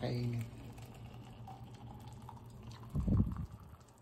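Hot water pours from a kettle into a flask with a trickling gurgle.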